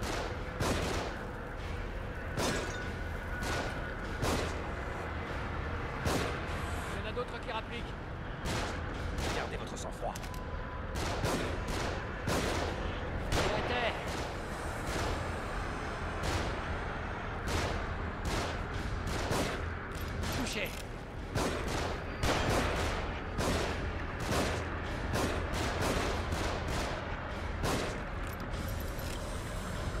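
Pistol shots crack repeatedly, one after another.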